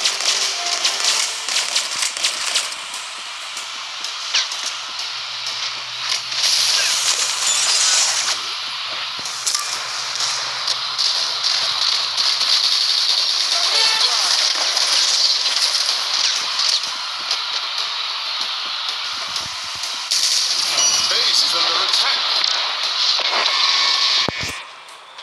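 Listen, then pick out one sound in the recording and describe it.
Gunfire from a game crackles rapidly.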